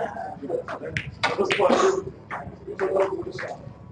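Snooker balls knock against each other and roll.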